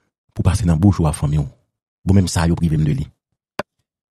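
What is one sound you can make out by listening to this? A middle-aged man speaks with animation into a headset microphone, heard as if over an online call.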